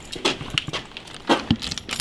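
A door handle rattles.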